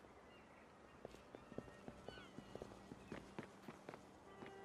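Footsteps tap quickly across a hard rooftop.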